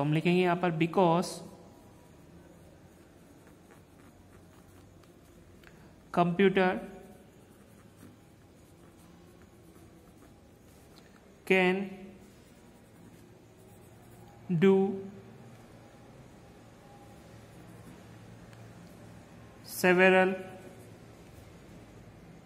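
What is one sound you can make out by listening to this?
A pencil scratches on paper as someone writes.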